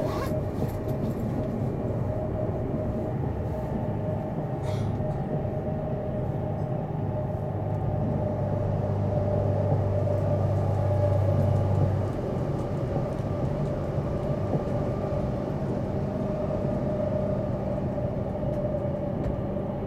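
A train rumbles and hums steadily while travelling along the tracks.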